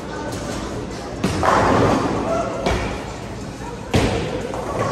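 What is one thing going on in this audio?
A bowling ball rumbles down a wooden lane.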